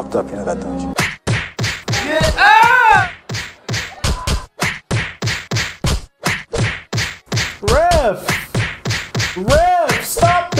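Fists thud repeatedly against a body.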